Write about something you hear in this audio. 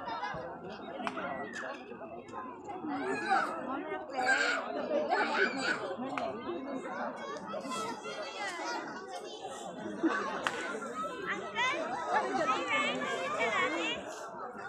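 Several men and women talk and shout excitedly outdoors.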